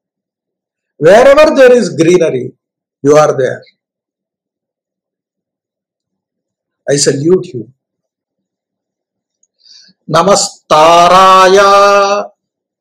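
An elderly man speaks with animation through a headset microphone, in short bursts with pauses.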